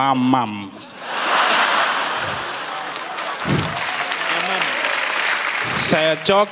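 A large audience claps and cheers.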